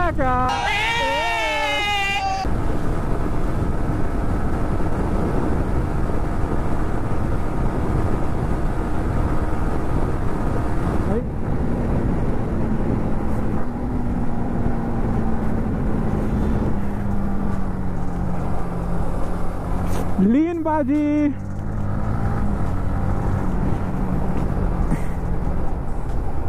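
A motorcycle engine hums steadily at speed and rises and falls in pitch with the throttle.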